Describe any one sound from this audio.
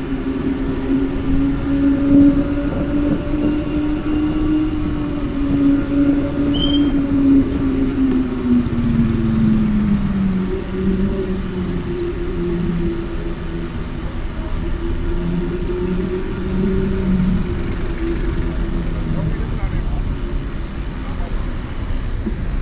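Car engines idle and hum in slow traffic close by.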